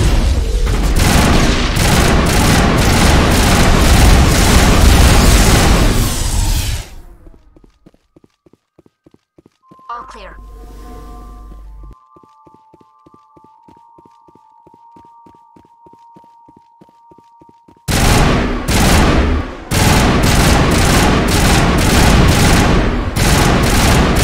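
Rapid gunfire and blasts ring out.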